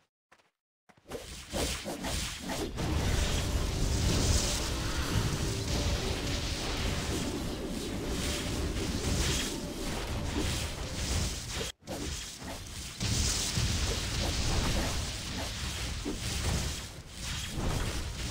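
Magic blasts and crashes sound loudly in a fierce battle.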